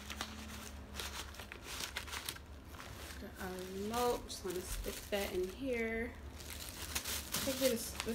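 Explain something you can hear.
A plastic bag crinkles and rustles in a woman's hands.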